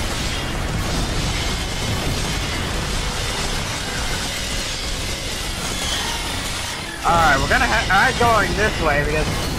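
Rockets whoosh as they fire.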